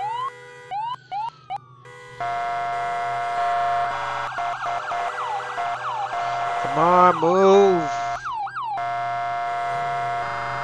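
A police siren wails and yelps, changing its pattern.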